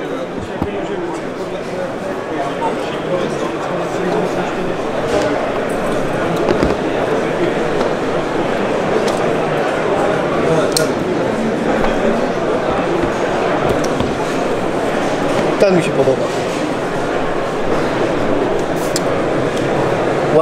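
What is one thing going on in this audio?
A crowd chatters steadily all around in a large, busy hall.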